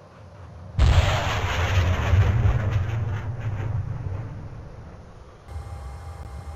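A loud roar of rushing air bursts in and slowly fades.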